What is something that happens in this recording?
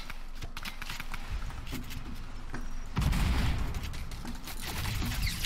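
Rapid video game clicks and impacts crackle.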